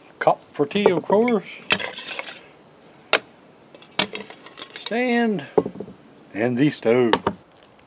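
Metal cups clink against each other.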